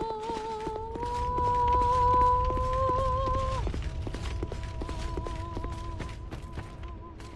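Heavy footsteps tread steadily on stone.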